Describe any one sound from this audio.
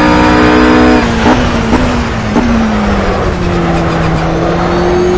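A GT3 racing car engine blips as it downshifts under braking.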